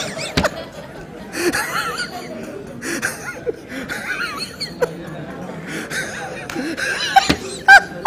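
A group of men laugh together.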